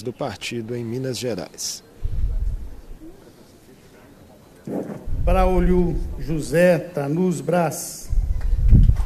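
A man speaks loudly through a microphone in a large echoing hall.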